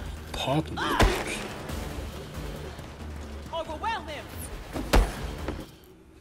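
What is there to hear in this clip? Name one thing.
Heavy punches land with dull thuds.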